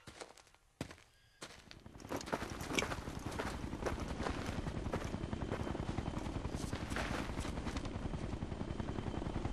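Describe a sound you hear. Boots tread on dry dirt as soldiers walk.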